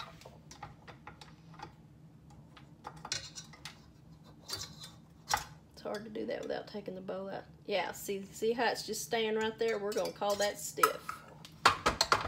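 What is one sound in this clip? A metal whisk clinks and clanks against a metal bowl.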